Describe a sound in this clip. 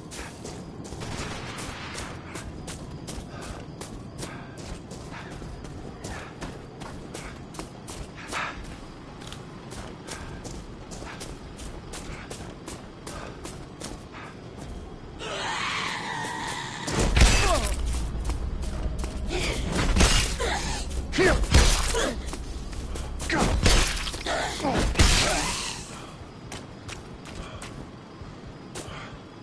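Footsteps crunch through snow at a steady walking pace.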